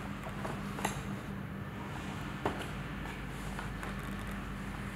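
Plastic dishes clatter softly as they are set into a cardboard box.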